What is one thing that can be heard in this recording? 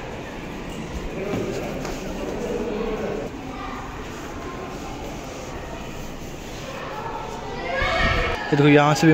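Men and women talk nearby in a large echoing hall.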